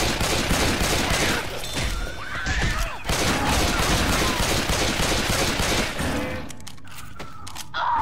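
Zombies snarl and shriek close by.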